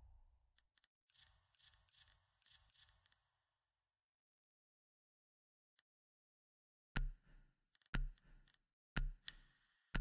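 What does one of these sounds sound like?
Short electronic menu clicks sound as options are selected.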